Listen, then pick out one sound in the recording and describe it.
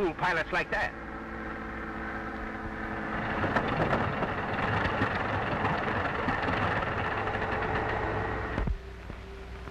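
A propeller plane's engine runs with a steady drone.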